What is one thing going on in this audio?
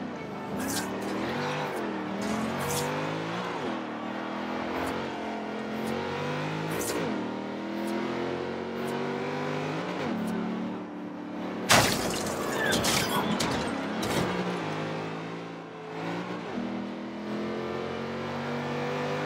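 A sports car engine roars and revs up and down through the gears.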